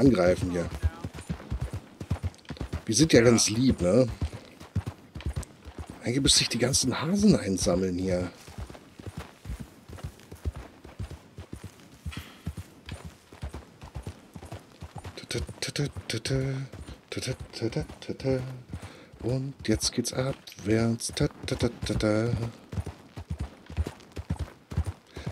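A horse's hooves clop steadily on a dirt trail.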